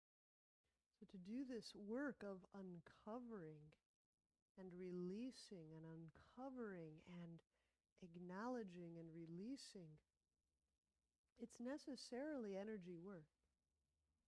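A man speaks calmly and clearly into a nearby microphone, in short phrases with pauses.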